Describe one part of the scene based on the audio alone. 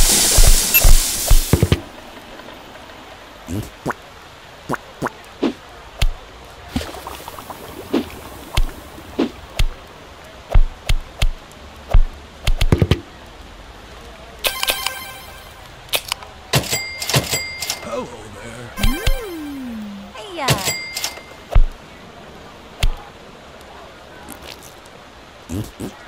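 Short game sound effects pop and click as food is served.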